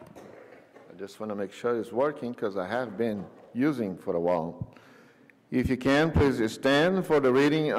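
An elderly man speaks steadily into a microphone in an echoing hall.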